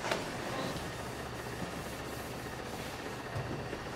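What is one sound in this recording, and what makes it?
An eraser rubs against a chalkboard.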